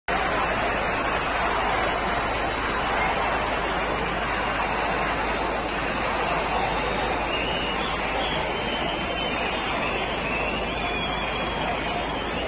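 A huge crowd roars and chants loudly outdoors.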